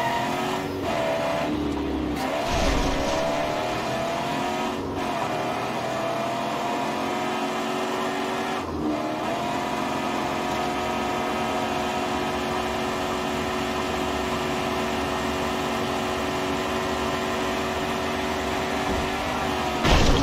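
A car engine roars steadily, with its pitch dipping and rising as the gears shift.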